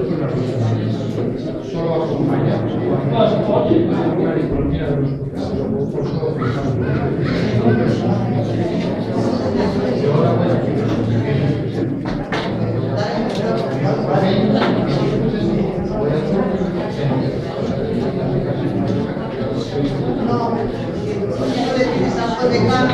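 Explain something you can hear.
A man speaks with animation to a small group.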